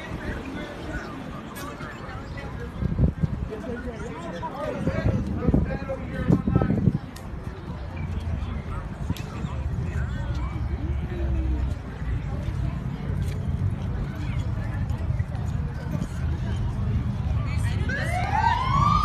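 Men and women talk and shout excitedly nearby outdoors.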